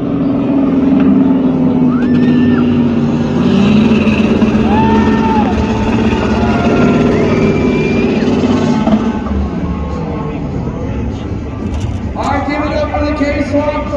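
A pickup truck's engine roars and revs as the truck drives on two wheels.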